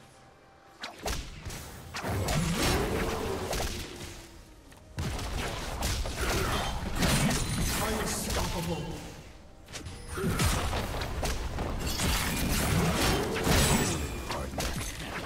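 Video game spells and weapon strikes clash in a loud battle.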